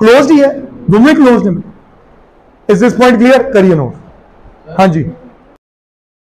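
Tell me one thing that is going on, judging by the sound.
A man speaks clearly into a clip-on microphone.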